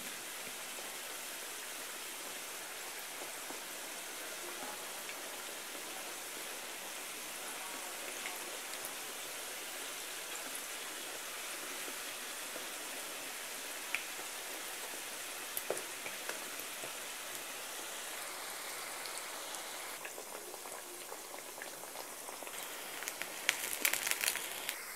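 Hot oil sizzles and crackles steadily in a frying pan.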